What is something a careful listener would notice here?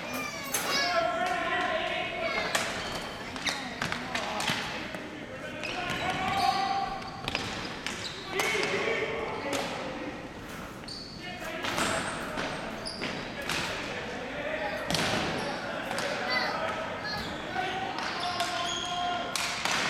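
Hockey sticks clack against a ball on a hard floor in a large echoing hall.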